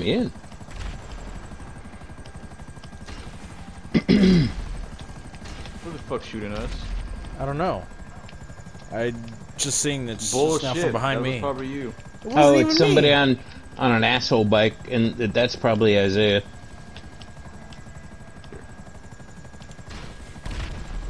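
A helicopter's rotor thumps steadily as it flies low.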